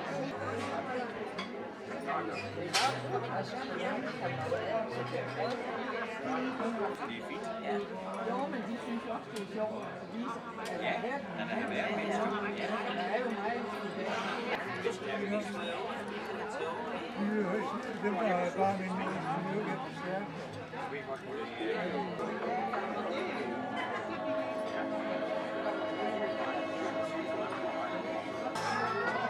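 A crowd of people chatter in a large echoing room.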